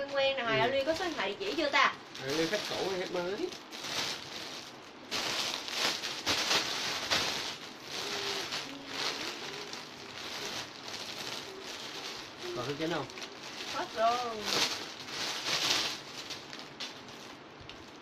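Plastic packaging crinkles and rustles as a young woman handles it.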